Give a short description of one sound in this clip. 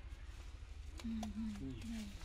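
Wet fish slap against concrete.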